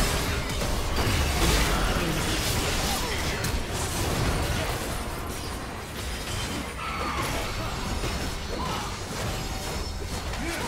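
Magic blasts and impacts clash rapidly in a fierce fight.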